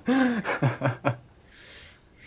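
A young man laughs loudly nearby.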